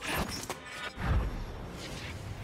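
A low whoosh sounds as a character returns to base.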